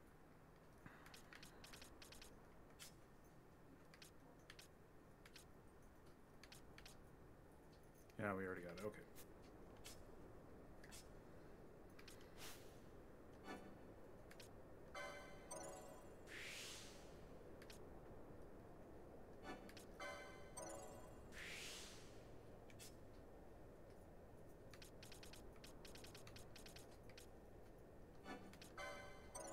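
Short electronic menu clicks and chimes sound now and then.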